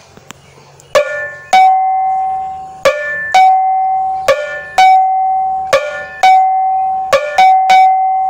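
A small metal gong is struck in quick pairs, each stroke ringing out.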